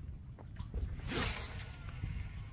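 A fishing rod swishes through the air.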